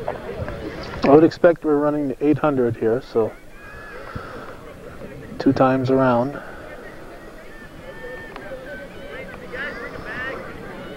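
A crowd of spectators chatters in the background outdoors.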